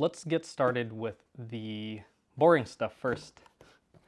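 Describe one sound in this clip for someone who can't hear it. A cardboard box slides and bumps on a wooden table.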